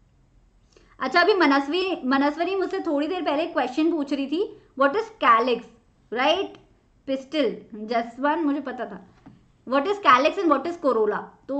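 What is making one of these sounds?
A young woman speaks clearly and with animation into a close microphone.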